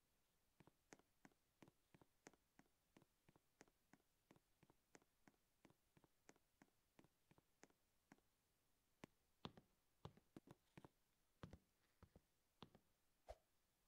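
Quick footsteps tap steadily as a game character walks and climbs.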